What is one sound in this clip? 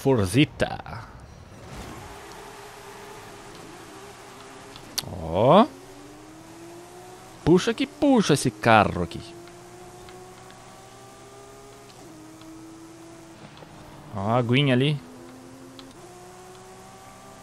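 A car engine hums and rises in pitch as it speeds up.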